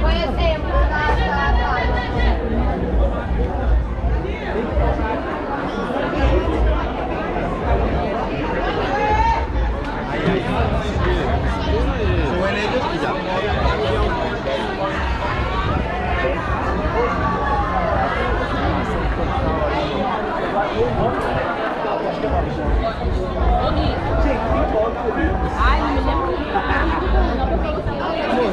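A crowd of men and women chatters all around, close by.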